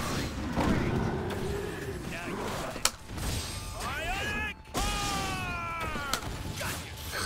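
Heavy blows and explosive hits crack in quick succession.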